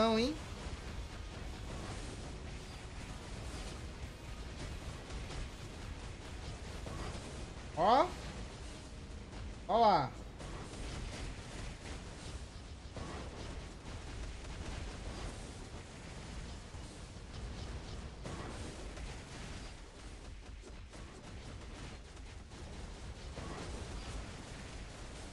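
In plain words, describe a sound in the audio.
Magical blasts whoosh and crackle in quick succession.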